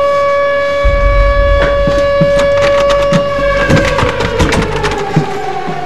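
A door handle rattles and clicks.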